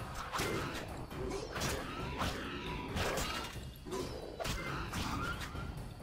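Blades strike and clash in a fight.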